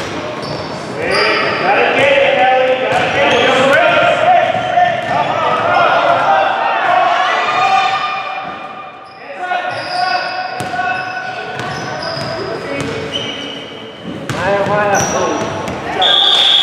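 Young women shout and call out across an echoing gym.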